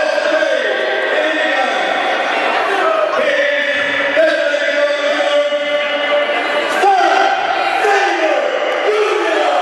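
A man announces loudly through a microphone over loudspeakers in a large echoing hall.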